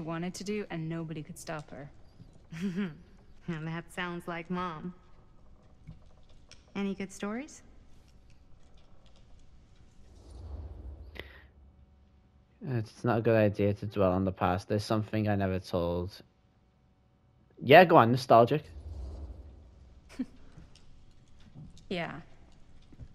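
A middle-aged woman speaks calmly.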